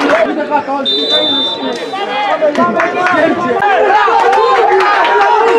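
A crowd of spectators shouts and chatters outdoors.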